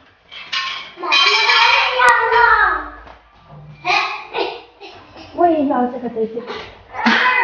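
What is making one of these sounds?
A small girl speaks in a high, eager voice.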